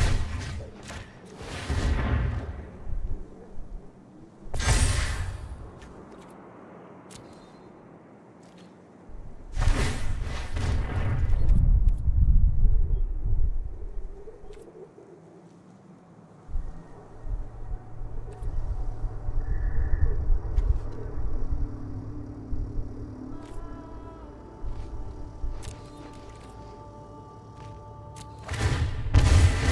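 A digital card game plays soft chimes and whooshing effects.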